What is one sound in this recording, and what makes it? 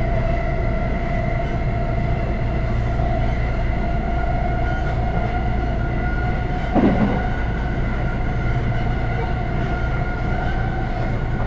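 A train rumbles and hums steadily along the track.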